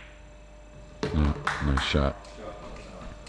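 Billiard balls knock together and thud into a pocket.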